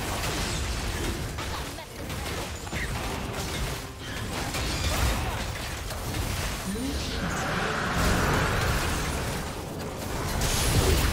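Video game fight effects whoosh, crash and clang.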